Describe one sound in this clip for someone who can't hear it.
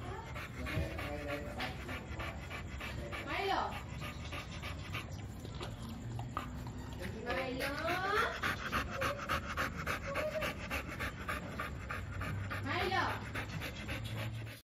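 A dog pants quickly and heavily close by.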